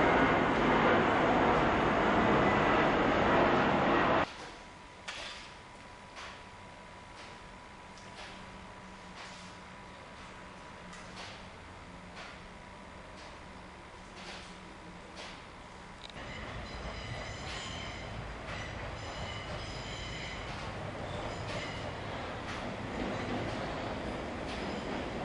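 A train rumbles as it approaches along the track.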